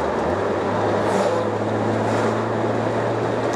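A heavy truck rushes past in the opposite direction.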